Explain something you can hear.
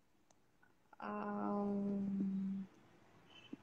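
A young woman hums a short note.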